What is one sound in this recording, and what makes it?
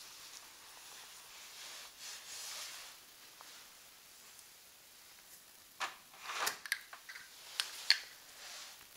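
Window blinds clatter and rattle close by.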